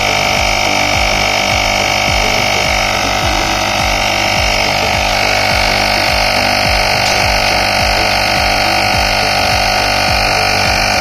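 A small electric air pump hums and buzzes steadily with a fast rhythmic pumping beat.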